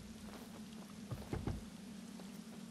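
A car door shuts with a thud.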